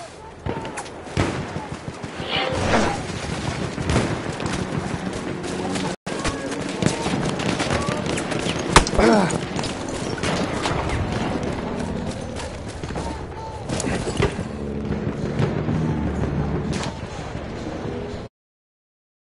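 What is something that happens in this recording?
Gunfire cracks in bursts.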